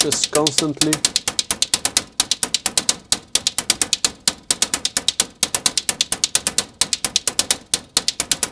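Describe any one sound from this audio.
Synthesizers play a fast, clicking electronic rhythm.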